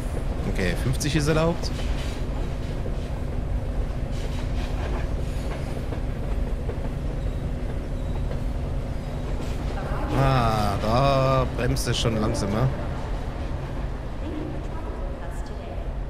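An underground metro train rumbles through a tunnel.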